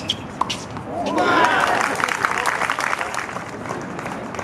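Spectators clap and cheer outdoors.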